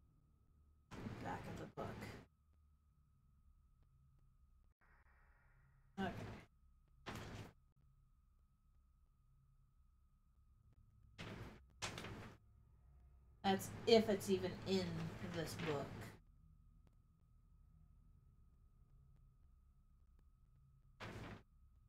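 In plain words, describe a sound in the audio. A young woman talks casually into a microphone, close by, in short bursts.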